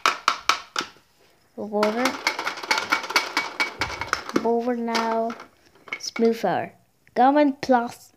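A wooden toy track piece clatters against plastic toy track.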